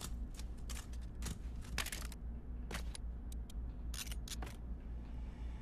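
A weapon clicks and rattles as it is handled.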